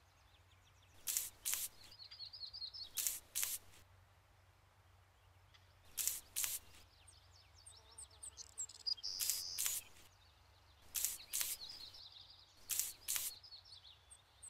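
A wide paint brush swishes in strokes across a wall.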